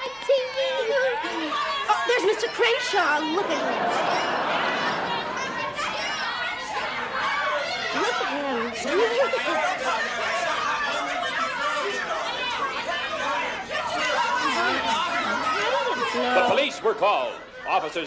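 A crowd of people talks and shouts excitedly all around.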